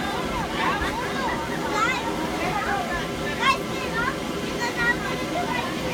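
Children shout and squeal with excitement close by.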